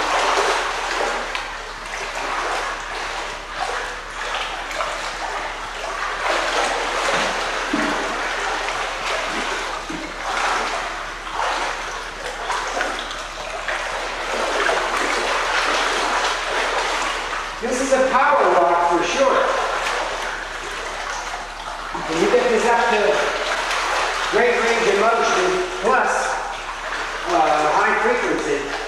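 A child splashes and wades through water in an echoing indoor pool.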